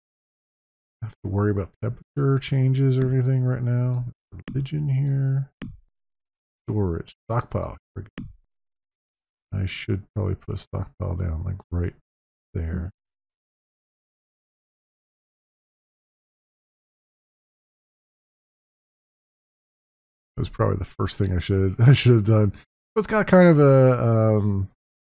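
A man talks calmly and casually into a close microphone, pausing now and then.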